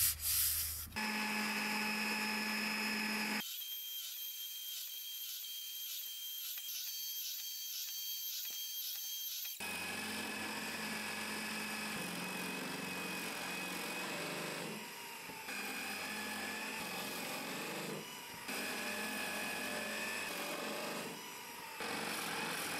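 A drill press motor whirs steadily.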